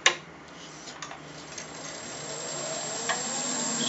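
A wood lathe motor whirs and speeds up.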